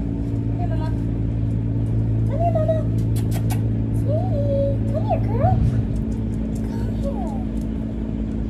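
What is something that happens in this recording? A woman calls out nearby in a high, coaxing voice.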